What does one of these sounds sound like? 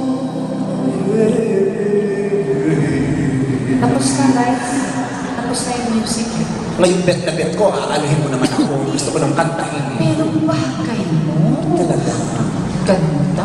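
A second singer sings into a microphone.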